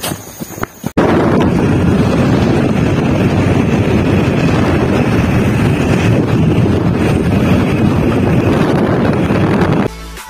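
Wind rushes loudly past a moving motorbike.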